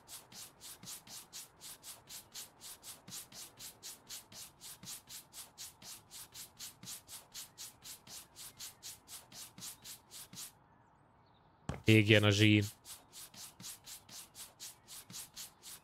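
A cloth scrubs a wall in quick, even strokes.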